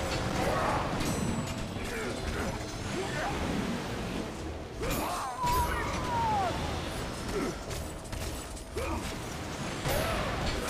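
Creatures screech and growl.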